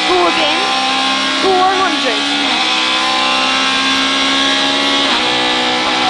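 A rally car engine roars loudly at high revs from inside the car.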